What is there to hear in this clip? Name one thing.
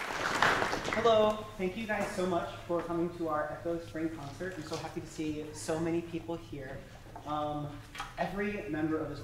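A woman speaks calmly to an audience in an echoing hall.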